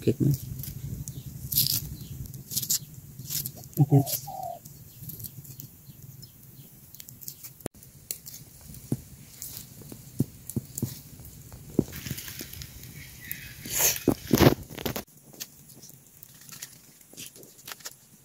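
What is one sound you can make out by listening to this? A machete blade scrapes and clicks as peel is cut away by hand.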